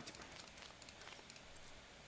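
Coins clink in a cash register drawer.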